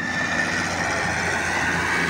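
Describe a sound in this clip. Sand pours from an excavator bucket into a trailer.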